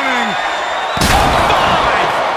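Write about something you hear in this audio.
A heavy body slams down onto a table with a loud crash.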